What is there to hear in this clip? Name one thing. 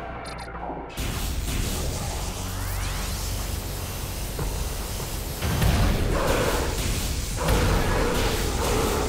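An energy weapon fires crackling, buzzing blasts.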